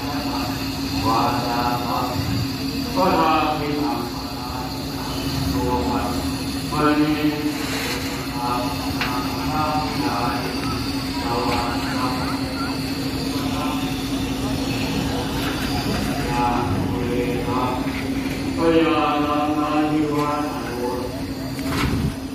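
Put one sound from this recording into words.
A man speaks steadily through a loudspeaker outdoors.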